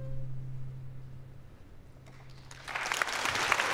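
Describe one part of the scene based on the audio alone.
A string ensemble holds a final low chord that fades away.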